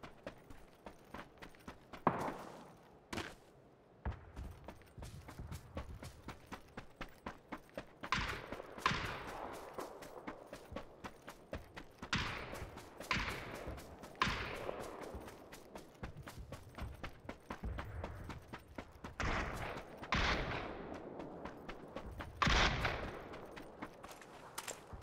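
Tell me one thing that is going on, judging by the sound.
Footsteps crunch quickly on dry grass and dirt.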